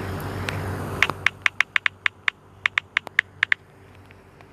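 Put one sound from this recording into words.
A phone keyboard clicks rapidly as keys are tapped.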